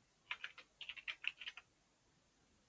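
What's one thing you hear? Keyboard keys click in a quick burst of typing.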